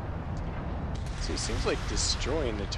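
Weapons fire in quick bursts.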